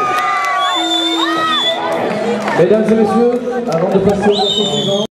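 A rock band plays loudly on electric guitars, heard from within a crowd.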